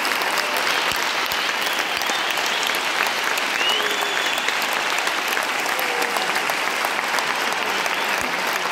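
A large crowd murmurs and chatters in a vast echoing arena.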